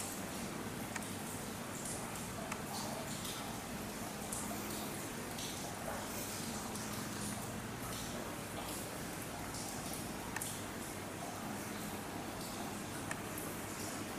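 Wire mesh clinks and rattles now and then under climbing hands and feet.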